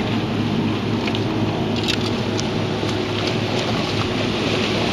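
Water splashes as a person wades through it.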